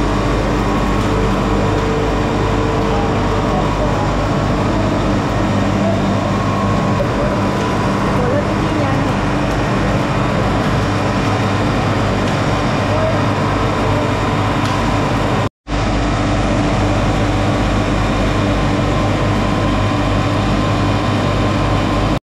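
Machinery hums and rattles steadily.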